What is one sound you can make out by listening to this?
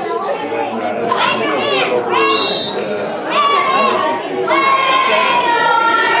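Young boys shout together.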